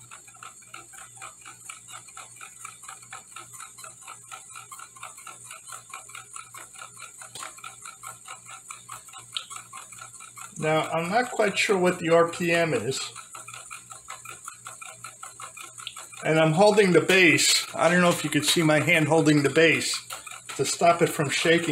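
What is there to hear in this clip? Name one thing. A small spinning toy whirs with a fast, even rattle.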